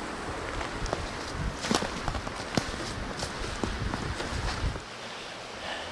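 Footsteps crunch through snow outdoors.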